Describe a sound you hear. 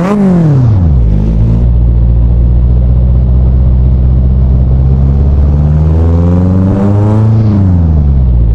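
A car engine revs up and shifts gears as the car speeds away.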